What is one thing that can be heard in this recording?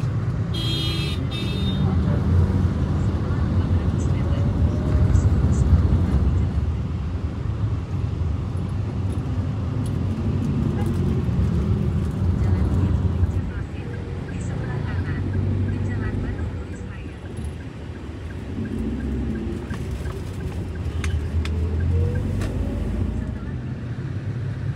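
Car engines idle and rumble in busy traffic.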